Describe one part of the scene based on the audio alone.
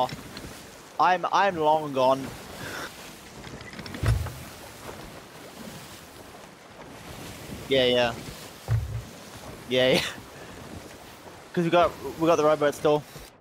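Ocean waves wash and roll around a wooden ship.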